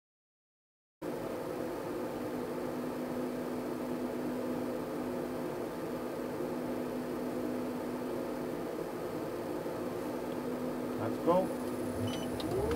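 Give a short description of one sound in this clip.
An electric sports car hums steadily while standing still.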